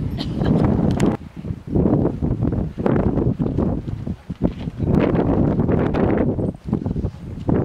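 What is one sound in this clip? Strong wind gusts roar across the microphone outdoors.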